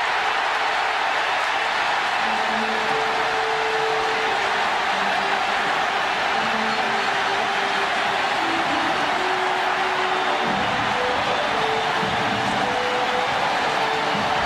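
Players shout and whoop as they celebrate up close.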